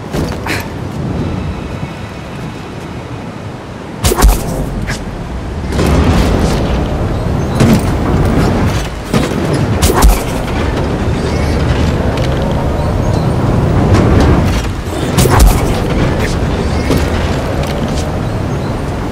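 Strong wind roars steadily.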